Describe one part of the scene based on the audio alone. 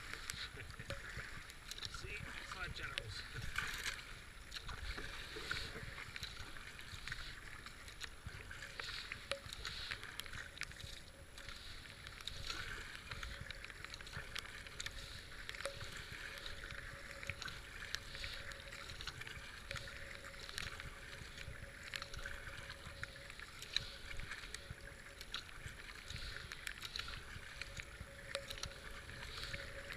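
A kayak paddle splashes rhythmically into the water.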